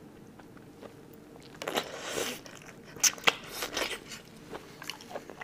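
A young woman chews and slurps noisily, close to a microphone.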